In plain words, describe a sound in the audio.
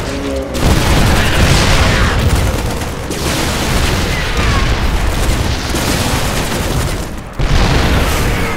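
Gunfire and explosions from a battle crackle and boom steadily.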